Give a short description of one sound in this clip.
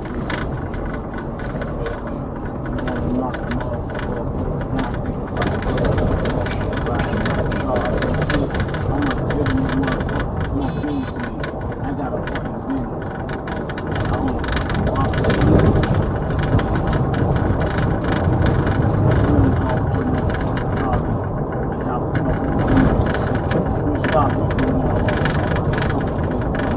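A car drives along a road, heard from inside the cabin.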